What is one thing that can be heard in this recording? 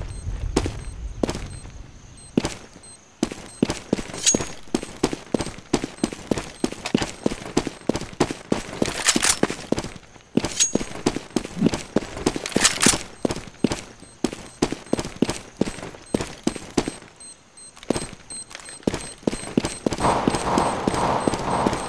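Footsteps thud quickly on hard floors.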